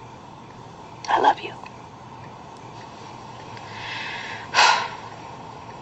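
A young woman speaks in short, quiet phrases through a television speaker.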